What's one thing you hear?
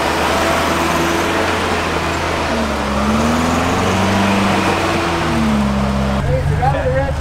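A truck engine idles up close.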